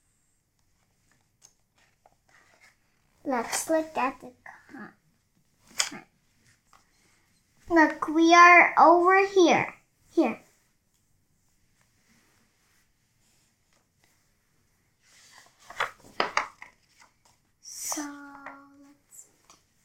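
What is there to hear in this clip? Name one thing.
Paper rustles as a book's pages are turned.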